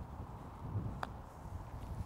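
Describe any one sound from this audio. A putter taps a golf ball with a light click.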